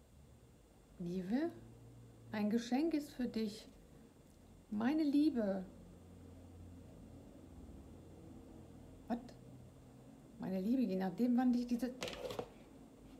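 A middle-aged woman speaks calmly and close by, with pauses.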